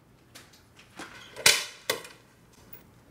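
A door lock rattles and clicks.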